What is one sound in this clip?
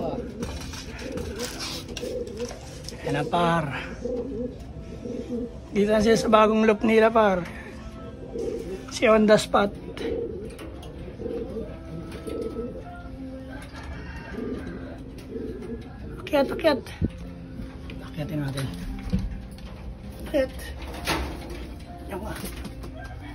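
Pigeons coo softly and steadily close by.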